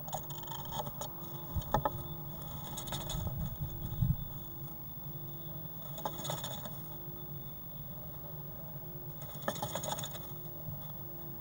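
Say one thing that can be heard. A small bird rustles and shuffles in dry nest material inside a nest box.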